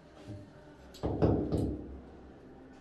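A hammer strikes a wall with heavy thuds.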